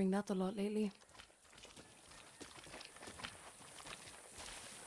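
Footsteps run on dirt.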